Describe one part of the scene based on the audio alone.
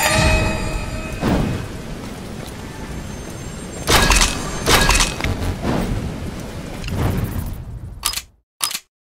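Heavy footsteps thud and crunch on stone.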